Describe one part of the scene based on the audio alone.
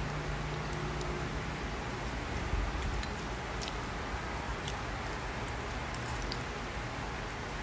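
A young man slurps soup from a bowl close by.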